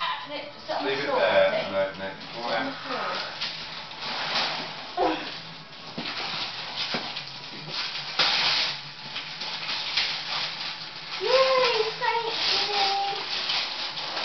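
Children talk and call out excitedly close by.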